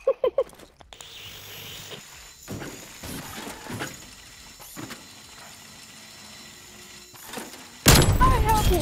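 A small toy car's motor whirs as it drives along.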